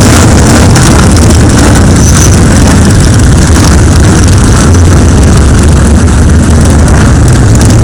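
Motorcycle engines rumble loudly nearby.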